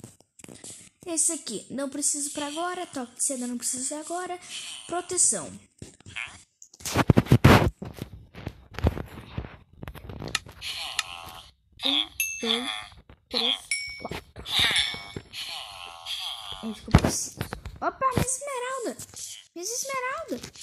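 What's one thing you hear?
A young person talks with animation into a nearby microphone.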